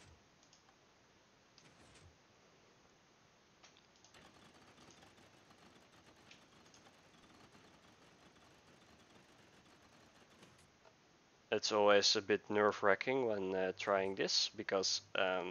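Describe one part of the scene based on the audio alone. Mechanical pistons clunk and buttons click softly now and then.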